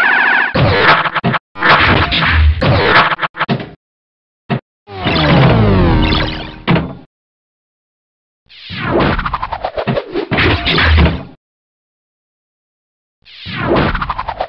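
Electronic pinball game sounds chime, buzz and sweep in bursts.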